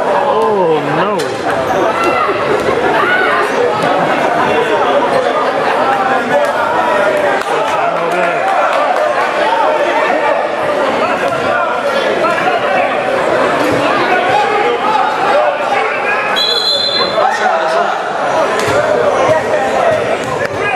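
A crowd of spectators chatters and calls out loudly in an echoing gym.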